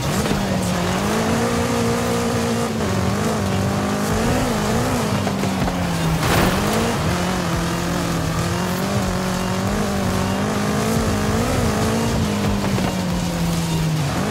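A car engine roars steadily, rising and falling in pitch as it shifts gears.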